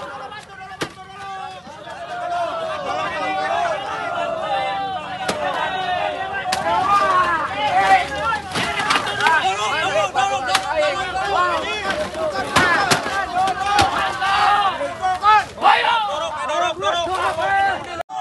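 A crowd of men shouts and yells loudly nearby.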